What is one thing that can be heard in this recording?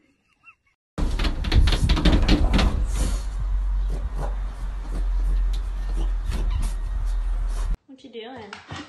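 A dog scrabbles its paws against a glass door.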